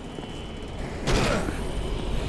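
A metal door bangs open with a kick.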